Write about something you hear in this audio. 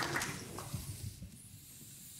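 A piano plays softly.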